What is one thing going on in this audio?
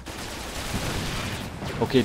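An explosion bursts.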